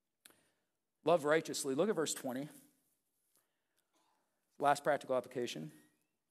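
A middle-aged man speaks calmly and slowly into a microphone, with long pauses.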